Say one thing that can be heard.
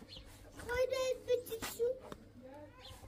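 A young child speaks in a high voice close by.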